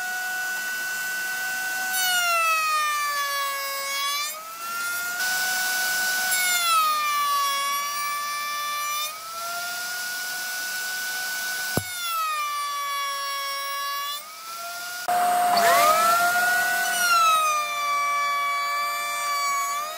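A router in a router table whines at high speed.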